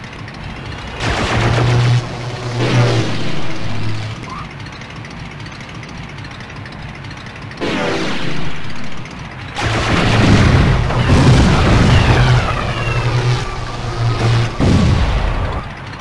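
Electric zaps crackle and whine.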